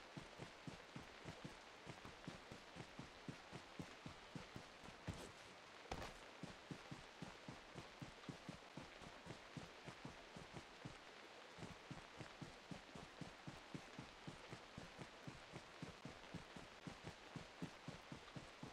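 Footsteps rustle through grass in a quick, steady rhythm.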